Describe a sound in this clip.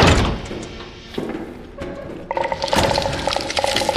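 Footsteps clatter on a metal walkway.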